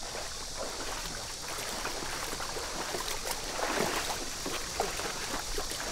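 Water splashes and sloshes as several men wade through it.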